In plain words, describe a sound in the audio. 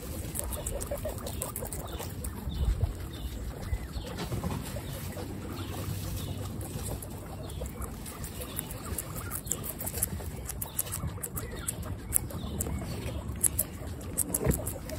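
Guinea pigs munch and crunch on tomato slices close by.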